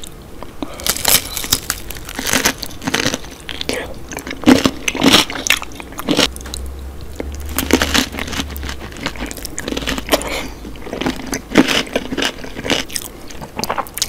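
A woman chews wet food noisily close to a microphone.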